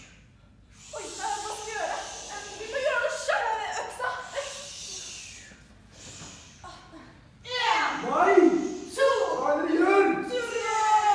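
Young women's voices murmur and call out close by.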